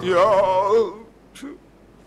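A young man sings close by.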